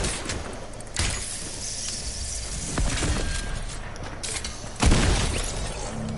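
Shotgun blasts boom loudly in quick succession.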